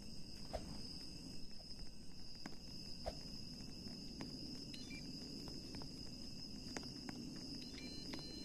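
A chain-link fence rattles as someone climbs it.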